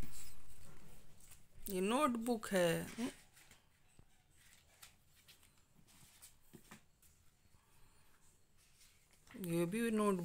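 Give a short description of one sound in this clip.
A stiff paper card rustles as it is handled.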